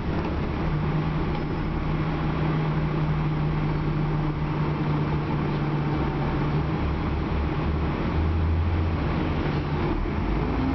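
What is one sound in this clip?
A bus engine hums and drones steadily while driving.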